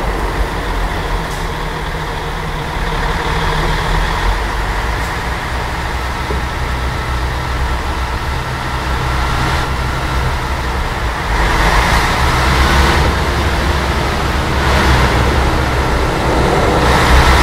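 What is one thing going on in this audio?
Tyres crunch over a rough dirt road.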